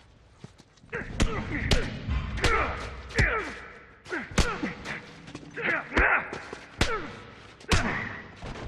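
Heavy blows and scuffling thump in a close struggle.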